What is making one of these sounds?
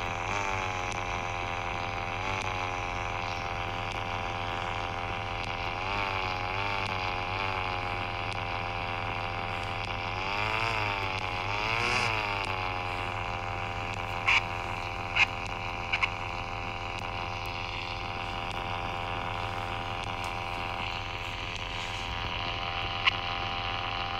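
A car engine hums steadily and revs up and down.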